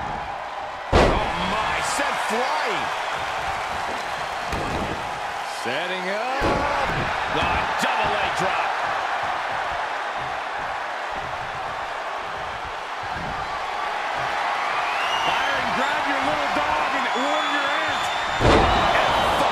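A heavy body slams down onto a wrestling ring mat with a loud thud.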